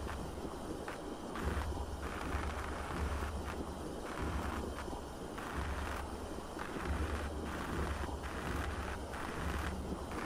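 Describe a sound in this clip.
A cutting torch hisses and crackles steadily against metal bars.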